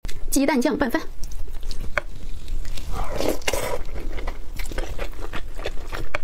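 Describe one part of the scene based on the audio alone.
A young woman chews food wetly and loudly, close up.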